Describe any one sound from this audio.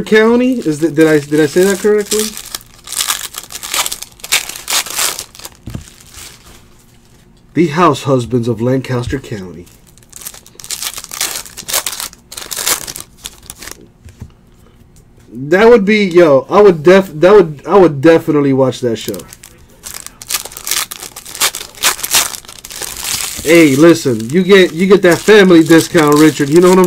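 Foil card wrappers crinkle and tear as hands open packs.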